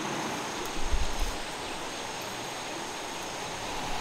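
Shallow water trickles over stones.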